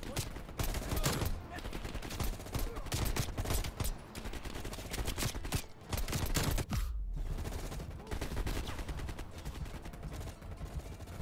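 Gunshots crack in rapid, loud bursts.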